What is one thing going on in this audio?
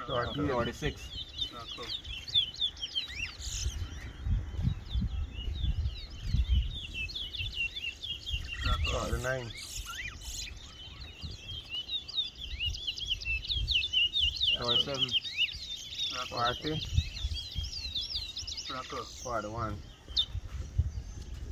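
Caged songbirds sing rapid, high, warbling chirps close by.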